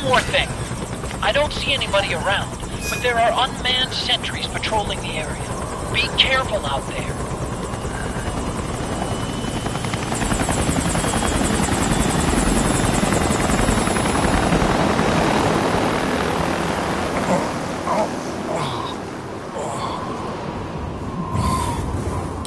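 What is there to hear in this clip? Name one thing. Wind howls through a snowstorm, rising and falling.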